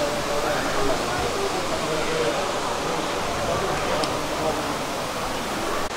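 Mist hisses steadily from sprayers.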